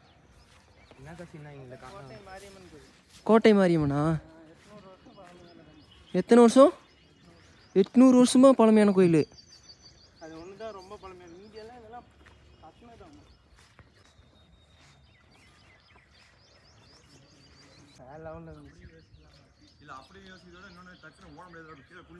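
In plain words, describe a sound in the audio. A man talks nearby outdoors, now and then calling out loudly.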